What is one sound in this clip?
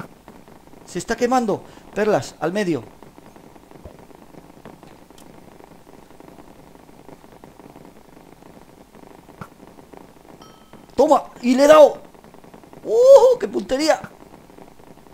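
A young man talks with animation into a nearby microphone, in short bursts.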